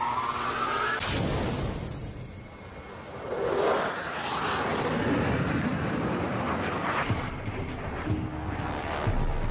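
A jet engine roars loudly as a fighter plane launches and flies past.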